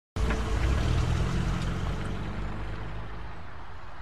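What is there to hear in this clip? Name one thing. Footsteps walk slowly on pavement.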